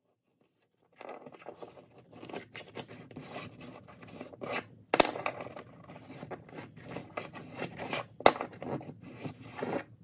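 A small wooden block rubs and scrapes against a wooden bench.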